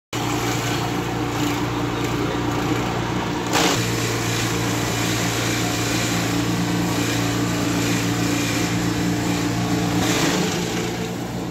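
A machine shreds plant stalks with a loud grinding rattle.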